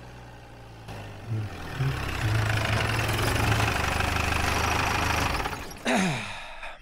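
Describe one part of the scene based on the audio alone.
A jeep engine rumbles loudly as it pulls up close.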